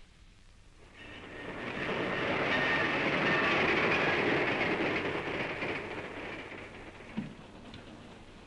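A steam train rumbles and hisses past.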